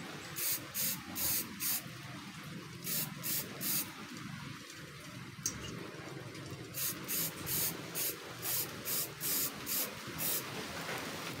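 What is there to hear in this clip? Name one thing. An aerosol can sprays in short, sharp hissing bursts.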